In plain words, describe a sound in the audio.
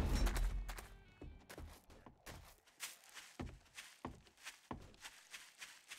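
Footsteps crunch through grass and dirt at an even walking pace.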